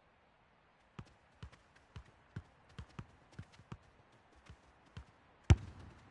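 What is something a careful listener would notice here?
A football is tapped along with light, quick touches.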